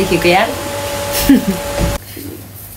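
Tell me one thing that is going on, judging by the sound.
A young woman laughs brightly.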